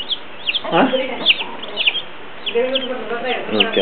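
Chicks peep close by.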